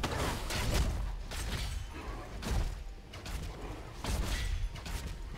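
Game combat effects clash and burst in quick, repeated hits.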